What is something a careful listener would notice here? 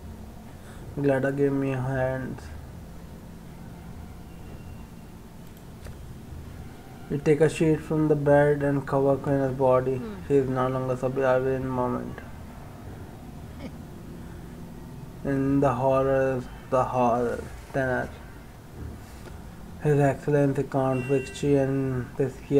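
A young man reads out lines calmly into a close microphone.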